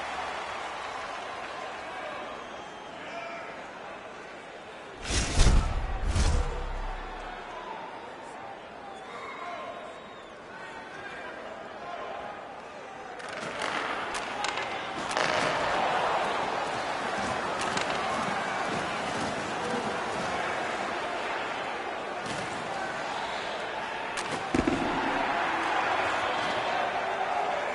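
A large arena crowd roars and cheers.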